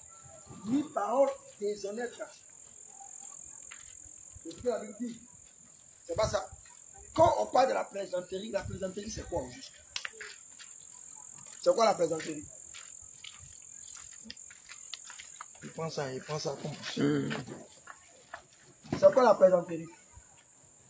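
A man speaks loudly outdoors in short bursts with pauses, close by.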